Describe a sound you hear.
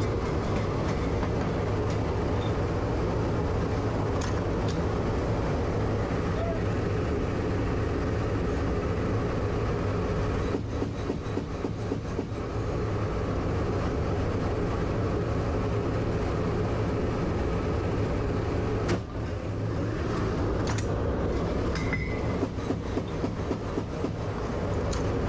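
Aircraft engines drone loudly and steadily inside a cabin.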